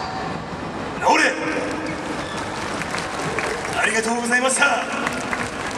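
A group of dancers shout together in chorus.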